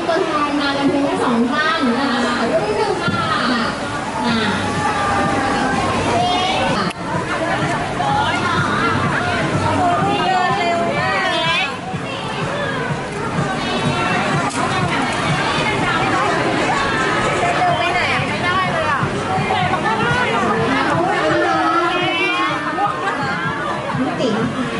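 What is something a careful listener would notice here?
A crowd of young women chatters and shrieks excitedly close by.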